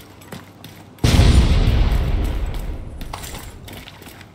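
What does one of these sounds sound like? An explosion booms close by and rumbles away.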